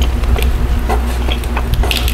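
Lettuce leaves rustle and crunch under a hand.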